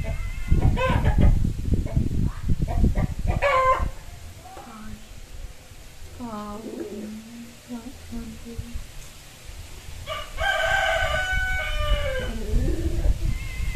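Young girls talk close by.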